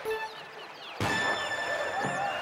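An electronic horn blares once.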